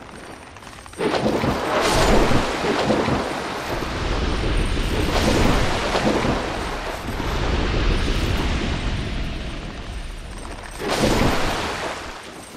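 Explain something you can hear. A sword slashes and strikes with heavy thuds.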